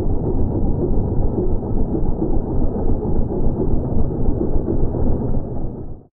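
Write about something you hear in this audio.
The small single-cylinder petrol engine of a ride-on mower runs as it drives along.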